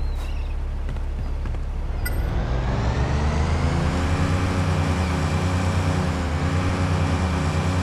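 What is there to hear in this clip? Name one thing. A motorboat engine drones steadily and revs up.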